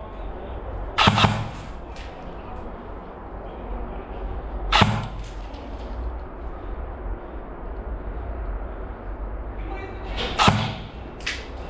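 A gun fires single sharp shots close by.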